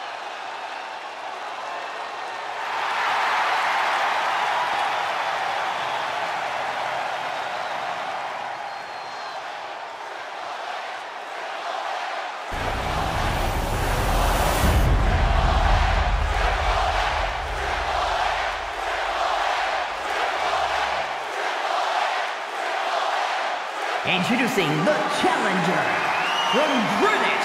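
A large arena crowd cheers and roars throughout.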